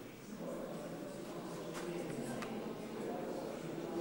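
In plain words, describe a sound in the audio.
A congregation murmurs softly in a large echoing hall.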